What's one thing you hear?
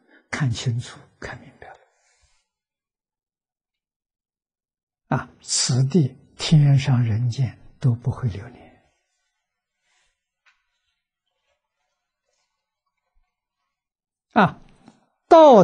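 An elderly man speaks calmly and warmly into a close microphone, with long pauses.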